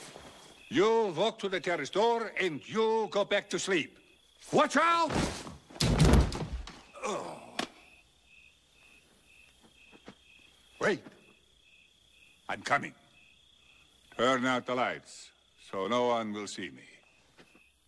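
An elderly man speaks in a commanding, theatrical tone.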